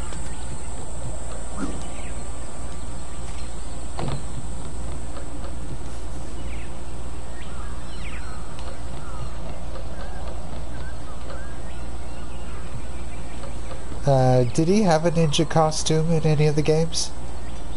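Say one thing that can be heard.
Footsteps patter on wooden planks.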